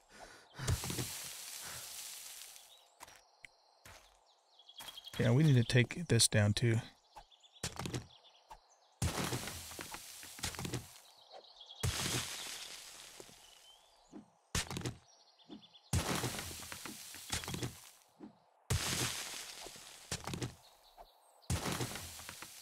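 A shovel repeatedly crunches and scrapes into dirt and rock.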